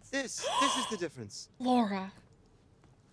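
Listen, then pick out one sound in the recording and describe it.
A young woman exclaims with animation, close to a microphone.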